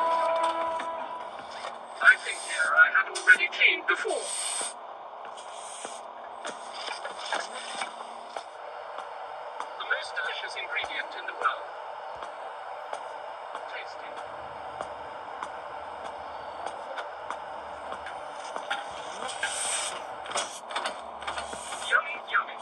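Fingertips tap and slide on a touchscreen.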